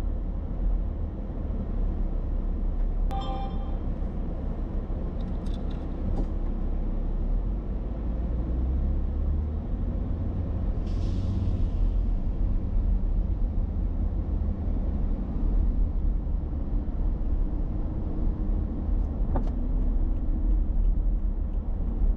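A car engine hums steadily as the car drives down a road.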